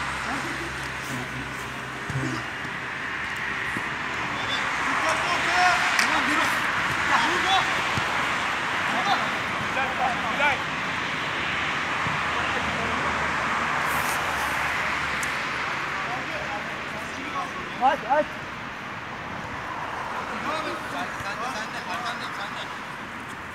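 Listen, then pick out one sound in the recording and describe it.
Men shout to each other across an outdoor pitch.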